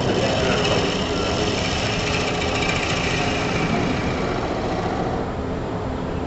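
A chisel scrapes and whirs against spinning wood.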